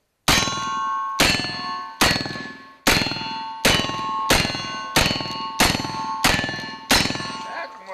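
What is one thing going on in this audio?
Revolver shots crack rapidly one after another.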